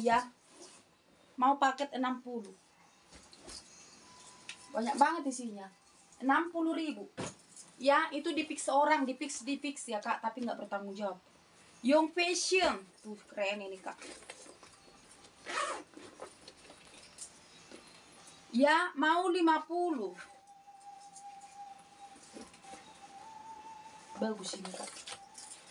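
A fabric bag rustles as it is handled.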